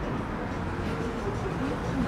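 Men and women chat faintly at nearby tables.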